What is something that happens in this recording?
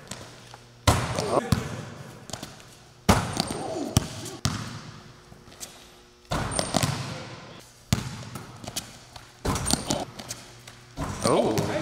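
A basketball rim rattles as a ball is dunked.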